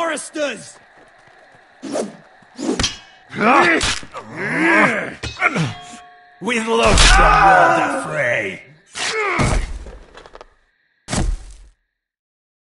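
Steel swords clash and ring.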